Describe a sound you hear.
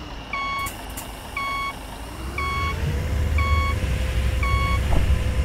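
A warning beep sounds steadily about once a second.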